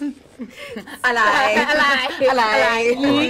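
Two young women laugh loudly together.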